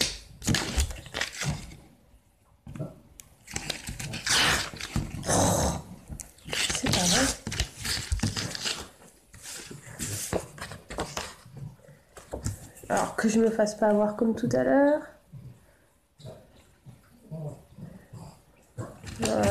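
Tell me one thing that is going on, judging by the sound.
Paper rustles and crinkles as it is folded.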